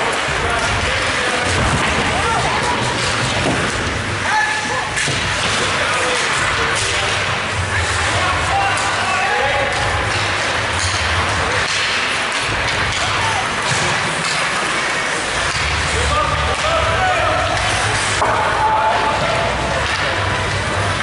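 Hockey sticks clack against a puck and each other.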